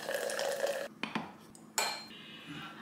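A lid clinks against a glass jar.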